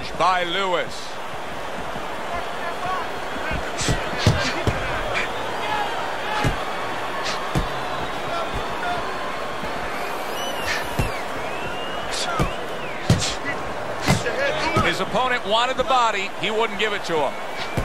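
A large crowd murmurs and cheers steadily in a big arena.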